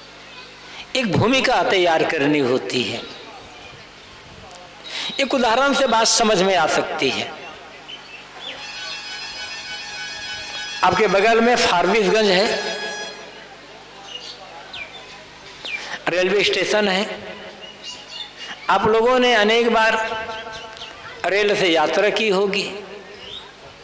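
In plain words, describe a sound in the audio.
An elderly man sings in a chanting way through a microphone and loudspeakers, in phrases with pauses between them.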